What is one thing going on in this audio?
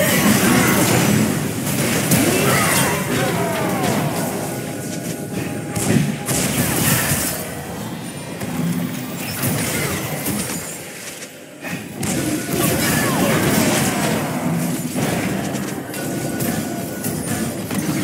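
Spell effects whoosh and crackle as game characters fight.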